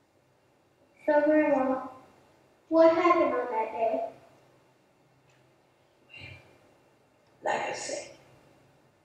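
A young girl speaks through a microphone.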